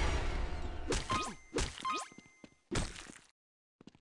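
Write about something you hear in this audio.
An axe chops into flesh several times.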